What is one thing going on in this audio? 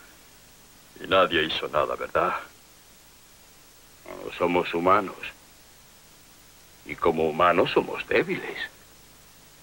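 A middle-aged man speaks firmly and close by.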